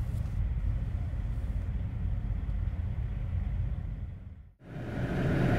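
A truck engine idles outdoors.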